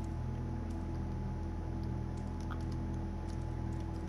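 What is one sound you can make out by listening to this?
Cardboard rustles under a cat's paws.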